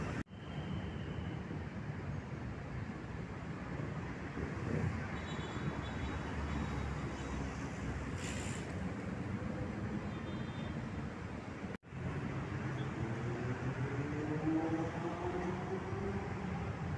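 City traffic rumbles steadily nearby, outdoors.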